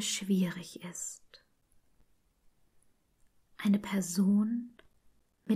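A woman speaks calmly and warmly, close to a microphone.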